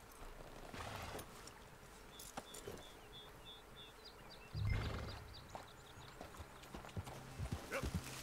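Horse hooves clop on rocky ground.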